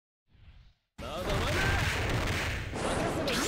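Weapons clash in a fight.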